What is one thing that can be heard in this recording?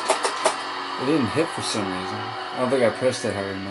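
An electric guitar wails with bending notes.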